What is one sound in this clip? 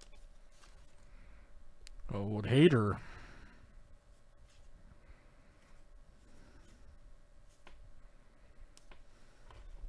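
Trading cards shuffle and slide against each other in hands.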